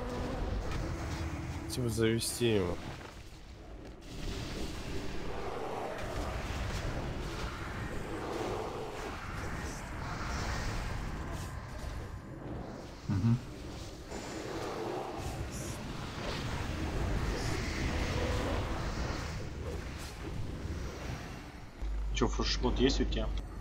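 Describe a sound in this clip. Magic spells crackle and boom in a fantasy battle.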